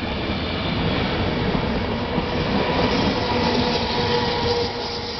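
Electric motors whine as a train pulls away.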